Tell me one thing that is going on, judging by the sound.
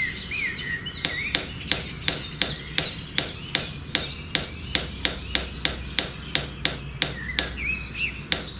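A small mallet taps a wooden stick into sand.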